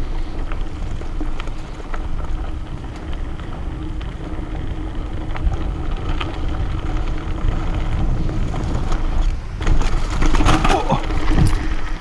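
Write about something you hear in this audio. Wind rumbles against a moving rider.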